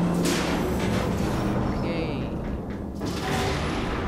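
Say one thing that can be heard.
A gun fires a short electric zap.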